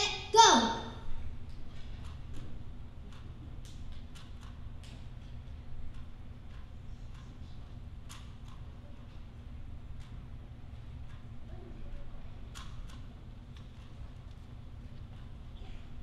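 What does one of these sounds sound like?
A small plastic puzzle cube clicks softly as a boy twists it.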